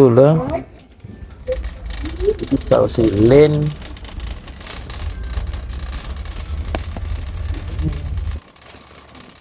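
A shopping cart rolls and rattles over a hard floor.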